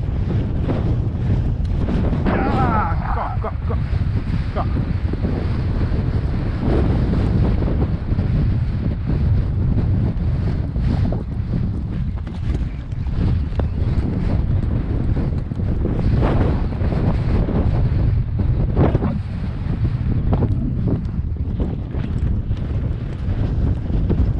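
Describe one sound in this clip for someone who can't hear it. A horse's hooves pound on a dirt track at a canter.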